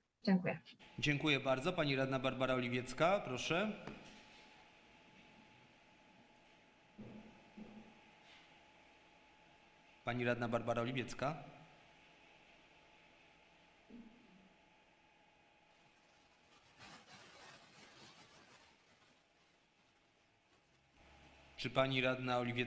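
A man speaks calmly into a microphone in a large room, pausing between phrases.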